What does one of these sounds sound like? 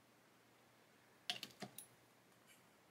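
A plastic cap clicks onto a small pot.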